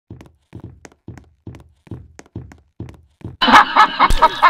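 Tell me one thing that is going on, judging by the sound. Footsteps run on stone paving.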